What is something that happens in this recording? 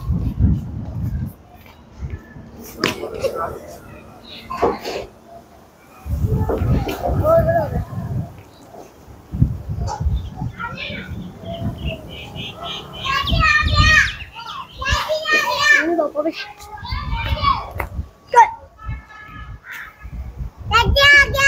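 Wind gusts against the microphone outdoors.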